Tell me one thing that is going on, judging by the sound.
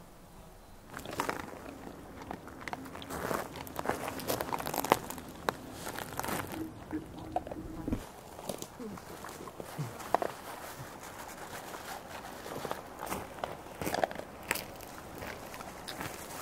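Dogs chew and lick noisily at food close by.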